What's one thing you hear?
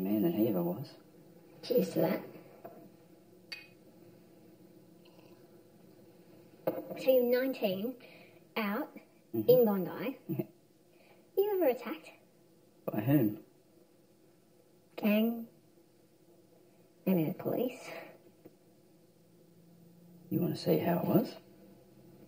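A woman speaks quietly and calmly, close by.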